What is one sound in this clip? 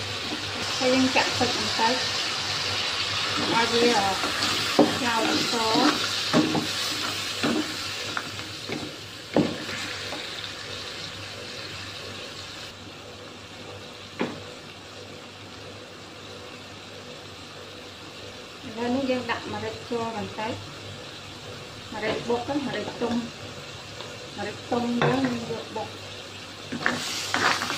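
A spatula scrapes and knocks against a metal pan.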